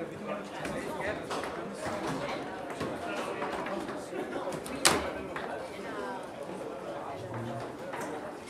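Foosball rods clack and the ball knocks sharply against the table.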